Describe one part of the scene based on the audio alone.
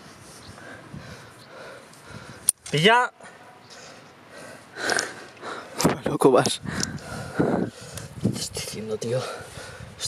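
A young man grunts and breathes hard with effort close by.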